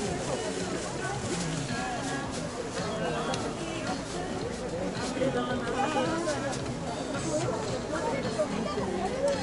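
A crowd of spectators chatters and calls out in a large open stadium.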